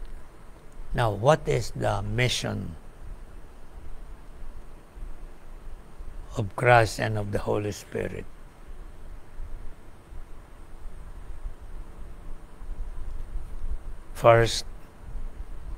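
An elderly man speaks calmly and slowly in short phrases, close by.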